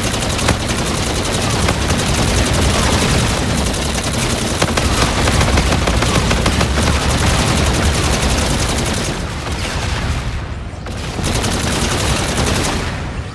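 Explosions boom with fiery blasts.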